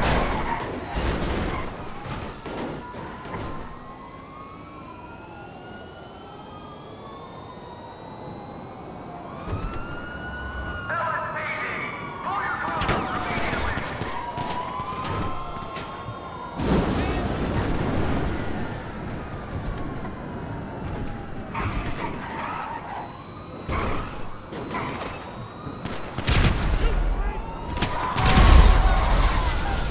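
A sports car engine revs up and down as the car speeds along.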